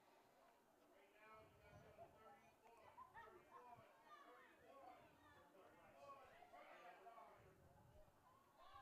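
A crowd of spectators murmurs outdoors.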